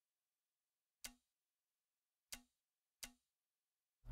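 Short soft clicks sound a few times.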